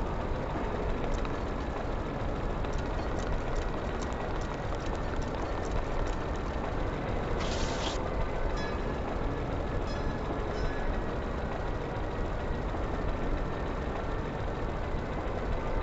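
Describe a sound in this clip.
Wind roars steadily all around.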